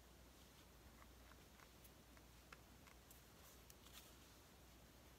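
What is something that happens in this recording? Small paper pieces tap lightly on a tabletop.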